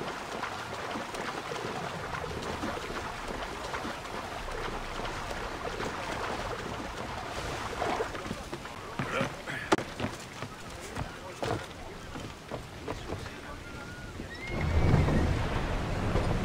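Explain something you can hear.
Waves wash and slosh steadily.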